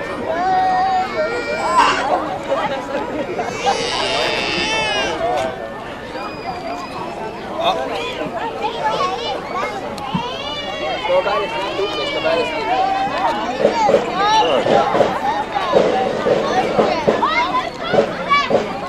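A crowd of adults and children chatters busily outdoors.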